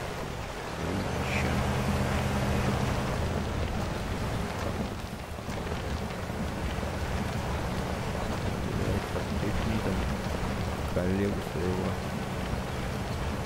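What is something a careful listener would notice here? An engine labours louder through deep mud.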